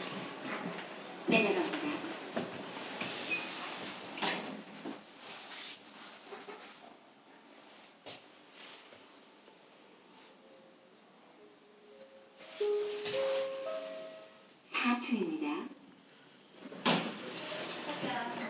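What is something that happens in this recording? A finger presses an elevator button with soft clicks.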